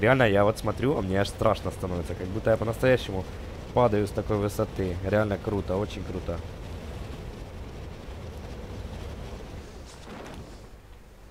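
Wind rushes past loudly during a freefall.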